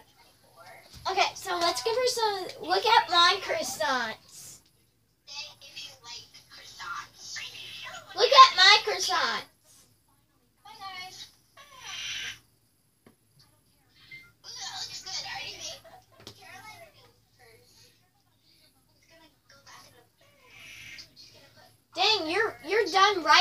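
A young girl talks close by with animation.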